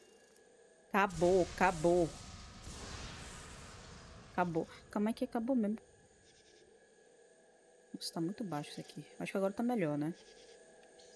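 A teenage boy talks with animation close to a microphone.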